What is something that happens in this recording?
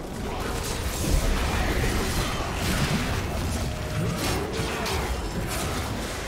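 Magic spell effects crackle and whoosh in a busy fight.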